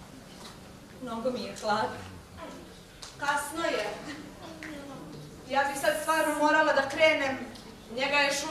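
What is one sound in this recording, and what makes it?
A young woman speaks with emotion.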